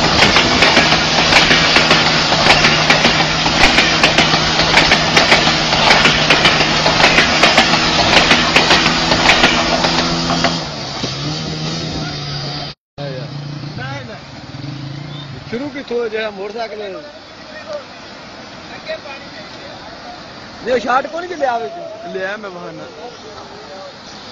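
Water gushes and splashes loudly.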